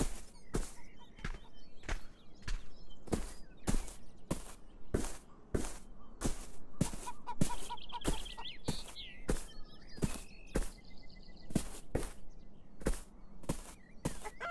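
Footsteps tread steadily on soft grass.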